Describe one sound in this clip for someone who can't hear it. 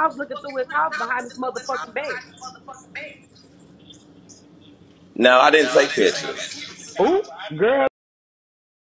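A man and a woman talk casually over an online video call.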